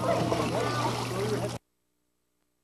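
Water splashes as a child swims.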